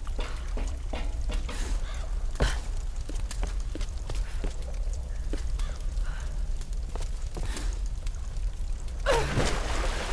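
Footsteps thud quickly on hard ground and wood.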